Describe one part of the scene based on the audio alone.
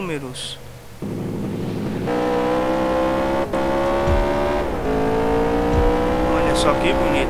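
A car engine revs hard and steadily.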